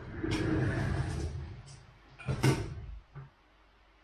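A chair scrapes across the floor.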